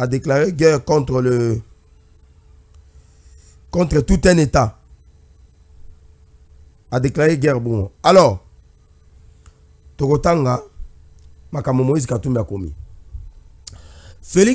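A man speaks into a microphone in short, calm bursts with pauses between them.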